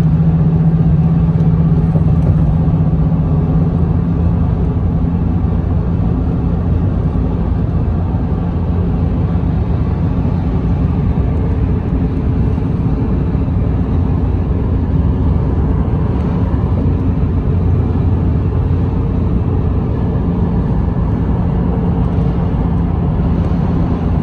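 Tyres roar on a road.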